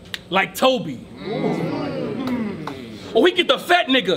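A crowd cheers and shouts briefly.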